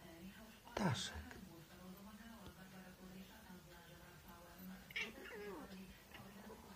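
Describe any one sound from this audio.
A cat meows softly.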